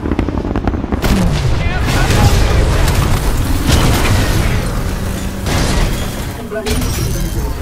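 A giant robot's heavy footsteps thud and clank.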